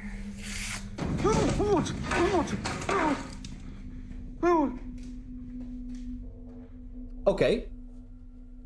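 A young man cries out in fright, close to a microphone.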